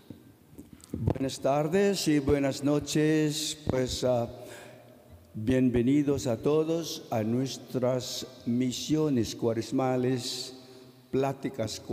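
A man sings slowly through a microphone in a large echoing hall.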